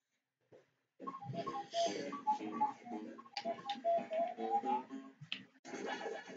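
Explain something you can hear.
A short, bouncy electronic game tune plays.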